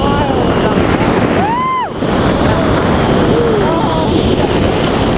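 A young woman whoops and shouts with excitement.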